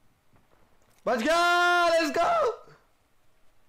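A young man shouts loudly into a close microphone.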